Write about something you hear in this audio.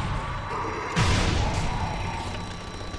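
A rifle fires a single loud shot that echoes.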